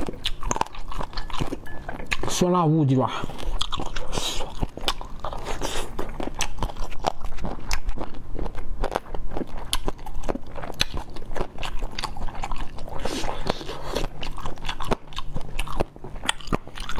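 A young man slurps food noisily.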